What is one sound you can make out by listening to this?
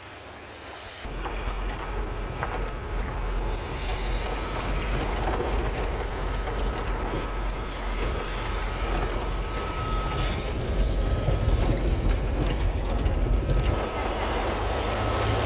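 Tyres crunch and rattle over a rough gravel road.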